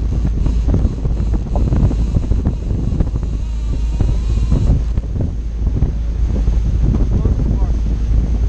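Wind buffets loudly, outdoors on open water.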